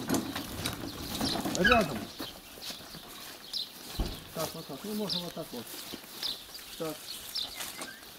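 A wooden cart's wheels rumble and creak over the ground.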